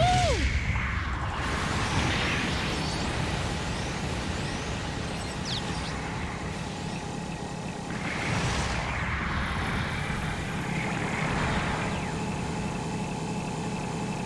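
Rocket thrusters roar steadily.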